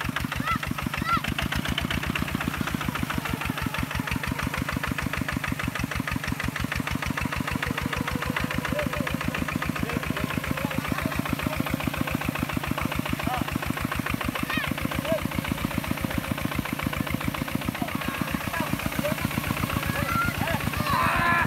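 Wet mud splashes and churns.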